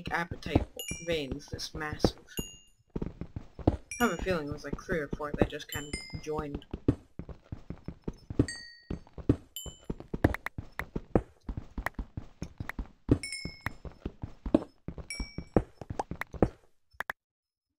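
A pickaxe chips rapidly at stone blocks.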